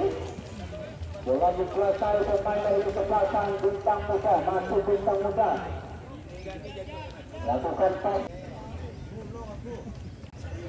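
A crowd of spectators chatters and shouts outdoors, at a distance.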